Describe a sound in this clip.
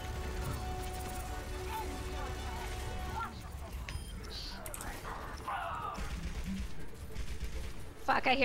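Gunfire rattles in bursts from a video game.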